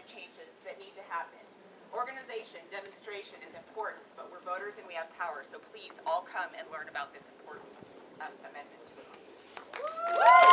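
A young woman speaks loudly through a megaphone outdoors.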